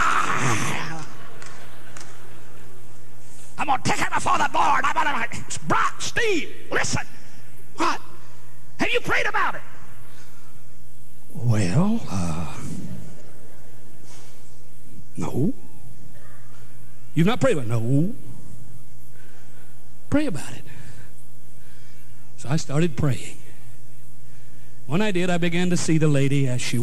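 A middle-aged man speaks with feeling into a microphone, in short phrases with pauses.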